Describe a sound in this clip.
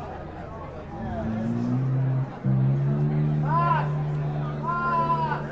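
An electric guitar rings out with loud sustained notes through amplifiers.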